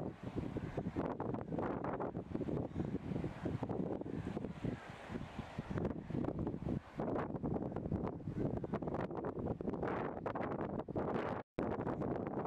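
A river rushes and splashes nearby.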